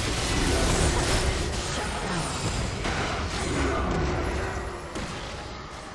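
Magical blasts crackle and boom in a fast video game fight.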